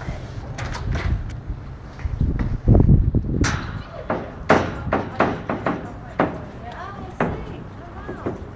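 Footsteps clang on a metal grating gangway.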